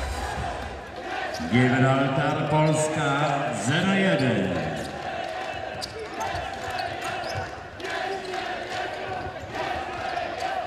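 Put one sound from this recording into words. A ball thuds off players' feet on a hard floor.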